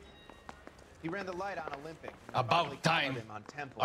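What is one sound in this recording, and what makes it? A man asks a question in an annoyed tone.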